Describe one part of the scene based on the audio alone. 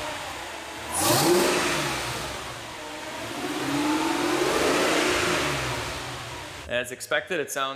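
A car engine revs loudly and roars.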